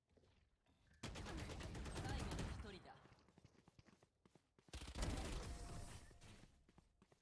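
Rapid gunfire bursts loudly.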